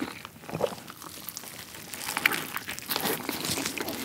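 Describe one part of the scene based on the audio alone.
A young man bites into a crisp burger with a crunch.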